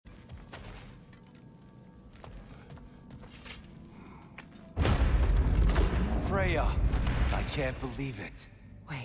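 Heavy footsteps thud on a wooden floor.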